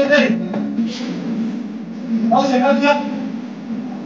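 A young woman speaks close to a phone microphone.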